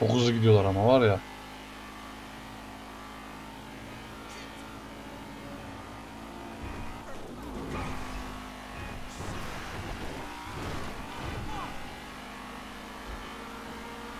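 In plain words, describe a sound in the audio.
A car engine hums steadily as a car drives fast.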